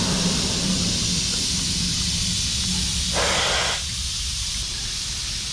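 A small steam locomotive rumbles and clanks along a track.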